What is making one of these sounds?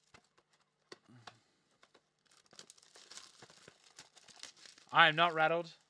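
Plastic wrapping crinkles as it is torn open.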